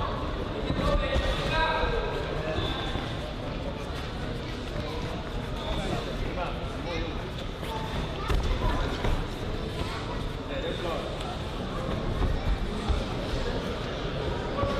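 Boxers' feet shuffle and squeak on the canvas of a ring.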